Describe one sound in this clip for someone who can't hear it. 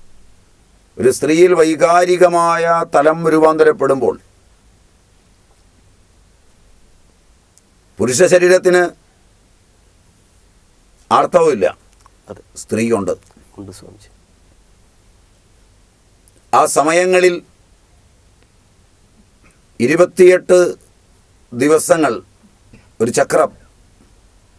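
An elderly man speaks animatedly and close to a microphone, in bursts with pauses.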